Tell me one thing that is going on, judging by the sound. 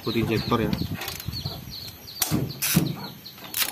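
Metal engine parts click and rattle under a wrench.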